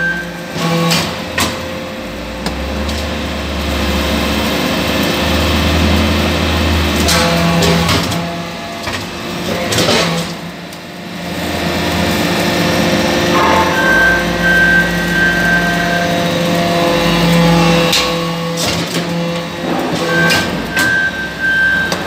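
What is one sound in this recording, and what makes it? Metal blocks clank as a press ram pushes them out.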